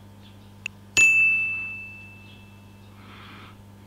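A taut metal wire snaps with a sharp ringing ping that slowly fades.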